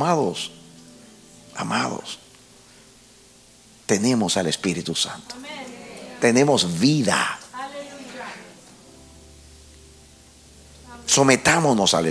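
An elderly man preaches passionately through a microphone, shouting in bursts.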